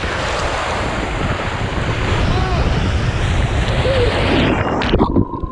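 Water rushes loudly down a slide, up close.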